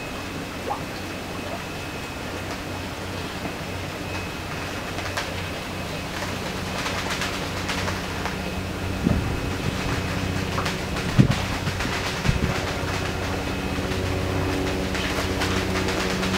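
Water laps softly in a tub as a fish swims.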